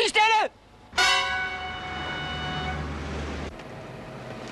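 A car horn honks with a steady tone.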